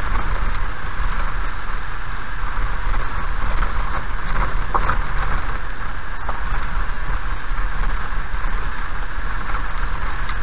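Windshield wipers swish across the glass.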